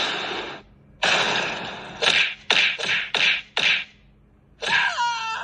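Punches thud and whoosh from a tablet's small speaker.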